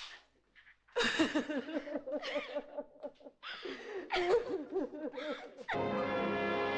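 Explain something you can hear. A young woman sobs and cries.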